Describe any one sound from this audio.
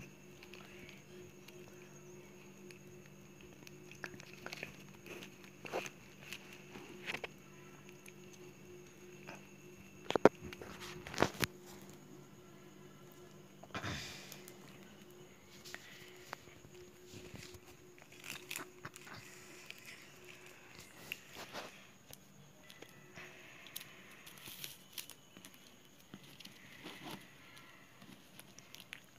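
Plastic strips rustle and click as hands weave them.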